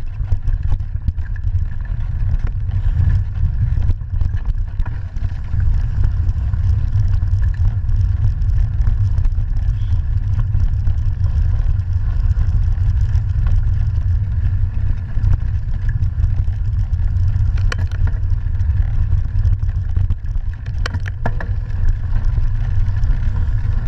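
Wind rumbles loudly against the microphone.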